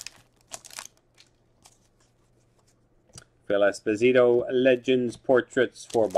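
Trading cards flick and slide against each other.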